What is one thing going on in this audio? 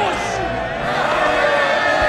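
A young man shouts with excitement.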